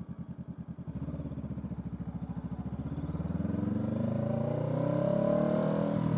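A parallel-twin cruiser motorcycle pulls away and accelerates, its engine note rising.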